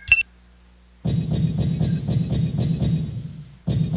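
Heavy mechanical footsteps thud in a steady rhythm.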